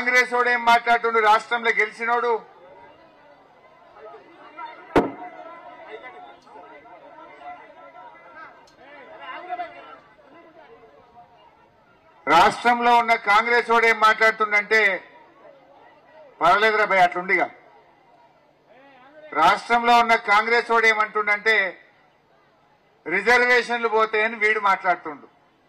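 A middle-aged man speaks forcefully through a microphone and loudspeakers, in short bursts.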